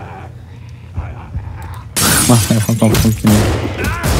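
Broken glass crunches underfoot.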